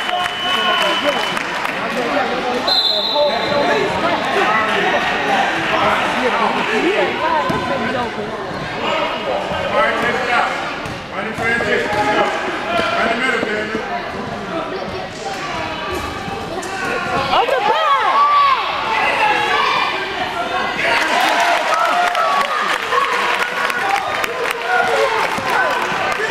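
A crowd of spectators chatters in an echoing gym.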